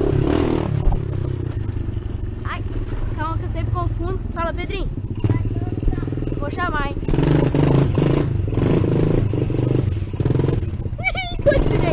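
A small dirt bike engine buzzes and revs as it is ridden.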